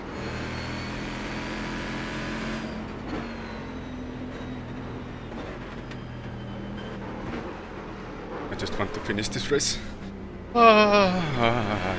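A racing car engine roars steadily.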